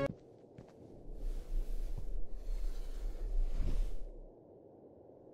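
A sheet of paper rustles in a hand.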